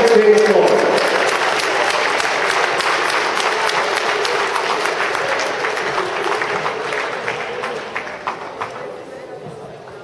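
A crowd of children chatter and cheer in a large echoing hall.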